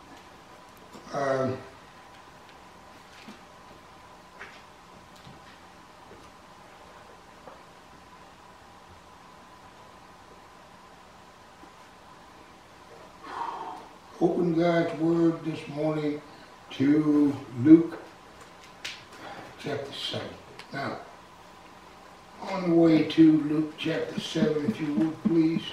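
An elderly man speaks slowly and solemnly into a microphone.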